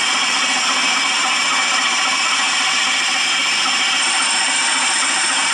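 Steam hisses steadily in a locomotive cab.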